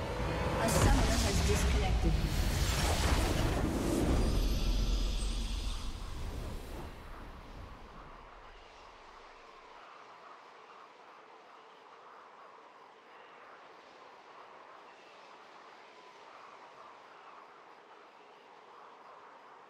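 A triumphant victory fanfare swells and then fades to soft ambience.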